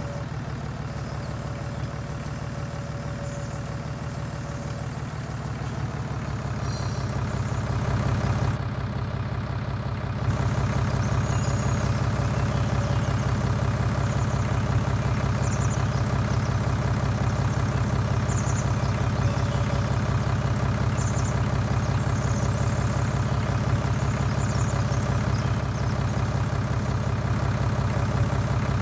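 A hydraulic crane arm whines as it moves.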